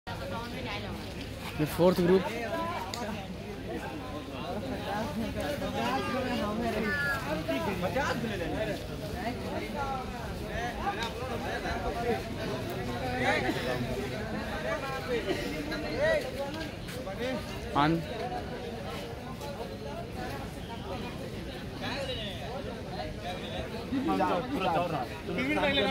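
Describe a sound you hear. A crowd of young people chatters in the distance.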